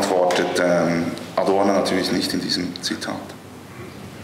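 A man talks calmly through a microphone in a large hall.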